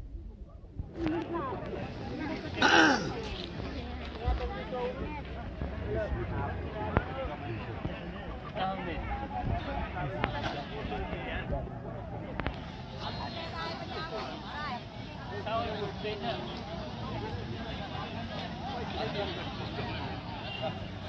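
A crowd of men and women chatter in the open air nearby and farther off.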